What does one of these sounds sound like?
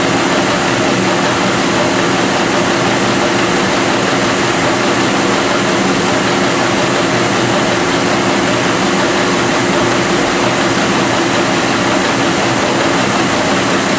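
A packaging machine hums and whirs steadily.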